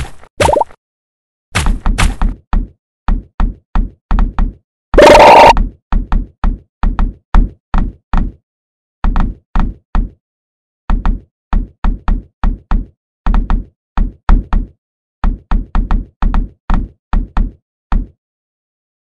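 A video game plays short popping sound effects in quick succession.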